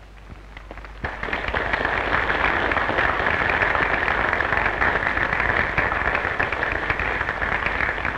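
An audience claps loudly in applause.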